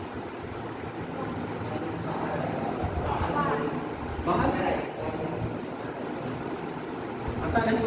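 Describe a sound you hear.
A man explains calmly, close by, in a slightly echoing room.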